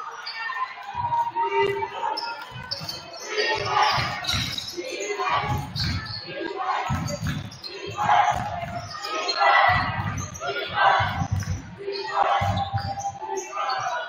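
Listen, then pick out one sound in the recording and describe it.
A basketball bounces with dull thuds on a wooden floor.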